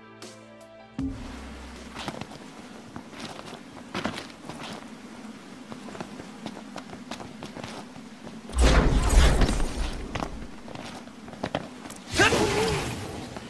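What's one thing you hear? Footsteps scrape and thud on rock.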